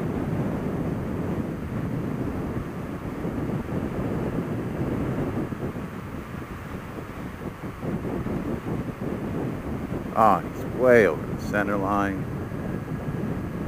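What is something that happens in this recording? Wind rushes and buffets loudly past a moving motorcycle.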